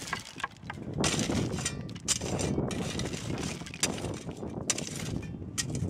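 A shovel scrapes and crunches through gravel.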